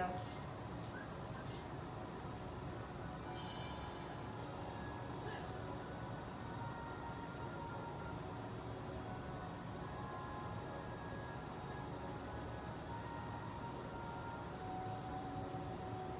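Video game music plays softly from a television speaker.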